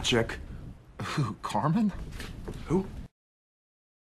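Another young man answers into a phone.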